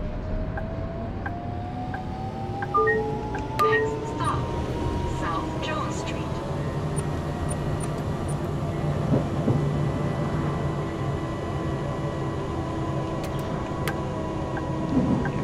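Tram wheels rumble steadily along the rails.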